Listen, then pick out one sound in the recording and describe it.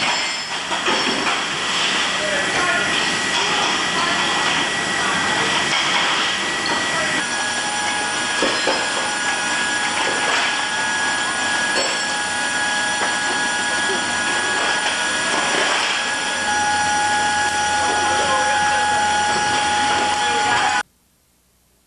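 Metal chains clink and rattle.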